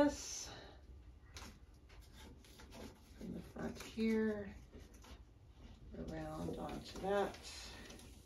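Tape crinkles softly as hands press it into place.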